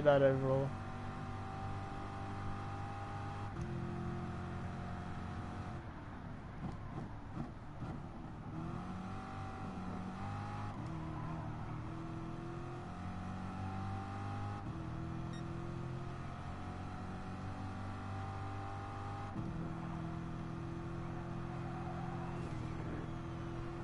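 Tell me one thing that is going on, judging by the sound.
A racing car engine roars, revving up through the gears and dropping in pitch at each shift.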